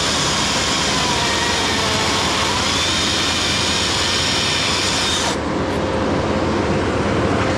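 A chainsaw roars loudly, cutting into wood up close.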